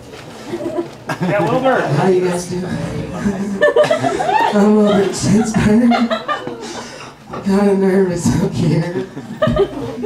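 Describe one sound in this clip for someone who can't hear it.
A man sings loudly into a microphone over loudspeakers.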